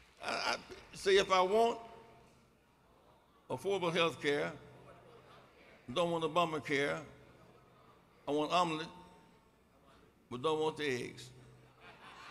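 An elderly man speaks slowly into a microphone in short phrases, echoing through a large hall.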